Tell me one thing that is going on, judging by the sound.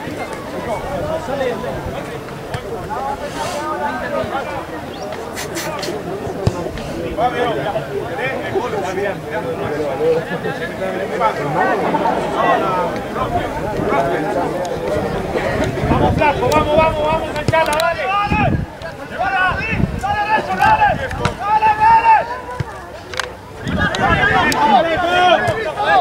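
Rugby players shout to each other across an open field.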